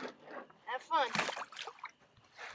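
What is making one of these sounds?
A fish splashes in the water beside a boat.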